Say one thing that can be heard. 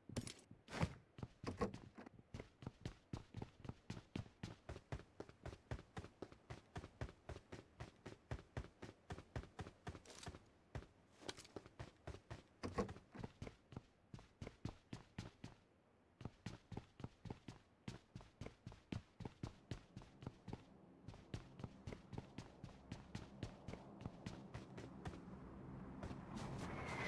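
Quick footsteps thud steadily on hard ground.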